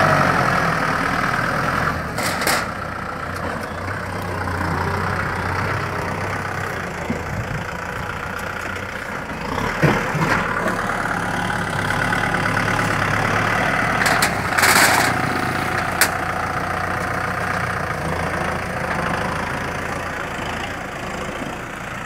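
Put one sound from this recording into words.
A tractor blade scrapes and pushes through loose sand and soil.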